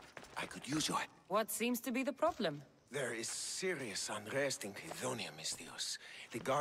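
A middle-aged man speaks pleadingly in a game's dialogue.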